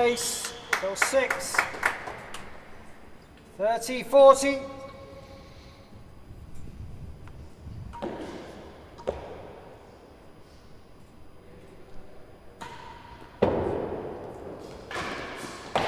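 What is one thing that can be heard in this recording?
A ball thuds off the walls and floor of a large echoing court.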